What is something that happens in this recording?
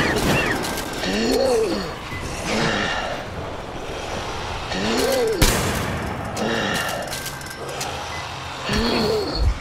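A creature shrieks and wails.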